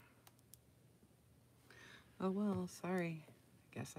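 A tablet is picked up with soft knocks and rustles.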